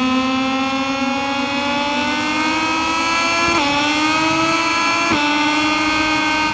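A motorcycle engine whines loudly at high revs, climbing in pitch and dropping briefly at each gear change.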